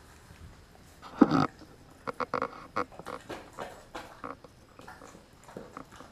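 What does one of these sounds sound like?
A dog eats noisily from a metal bowl, chewing wetly.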